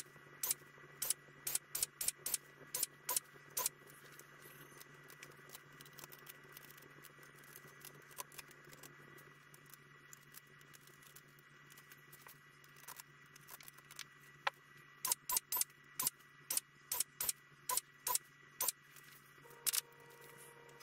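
A drill bites through aluminium in short sped-up bursts.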